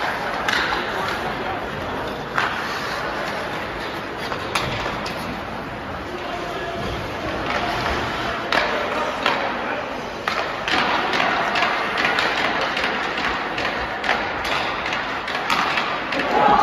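Hockey sticks clack sharply against the puck and the ice.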